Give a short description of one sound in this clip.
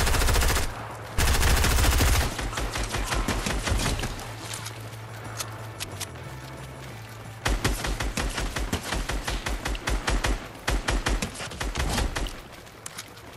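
Rapid gunshots fire in loud, quick bursts.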